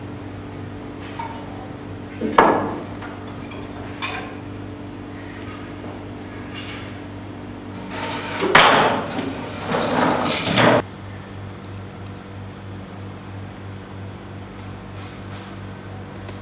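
A fluorescent light hums steadily.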